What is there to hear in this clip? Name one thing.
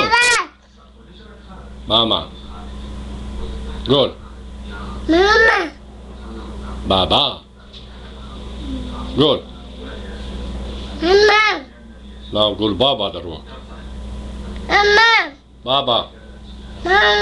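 A toddler squeals and babbles in short, high bursts close by.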